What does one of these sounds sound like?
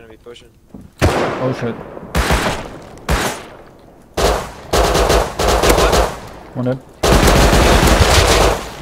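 A pistol fires a string of loud shots.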